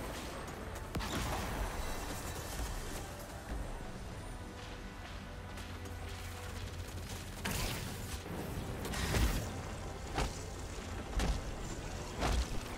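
Blasts and impacts boom and crackle.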